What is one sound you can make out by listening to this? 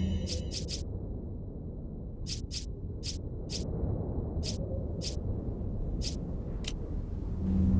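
Short, sharp menu blips tick one after another as a selection moves.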